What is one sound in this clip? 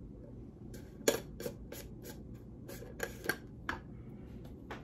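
A metal tin lid clicks and scrapes open.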